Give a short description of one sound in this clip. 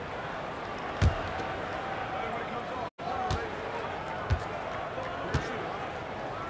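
A basketball bounces on a hard court a few times.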